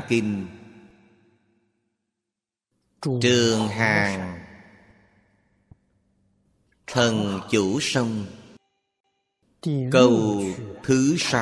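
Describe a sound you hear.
An elderly man speaks calmly and slowly into a close microphone, with pauses between phrases.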